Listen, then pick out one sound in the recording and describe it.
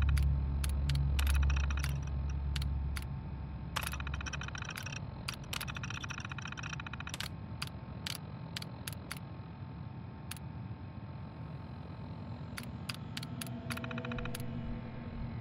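A computer terminal clicks and beeps sharply as menu selections change.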